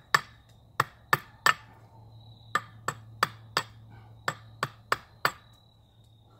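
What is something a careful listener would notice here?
A hatchet chops sharply into wood in quick, steady blows.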